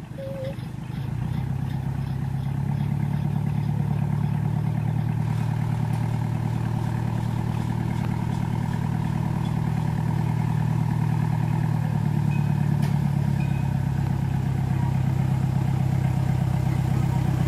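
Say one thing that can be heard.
A diesel locomotive engine rumbles steadily as it slowly approaches.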